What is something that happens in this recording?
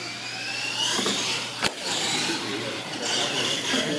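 A toy truck lands hard with a thud after a jump.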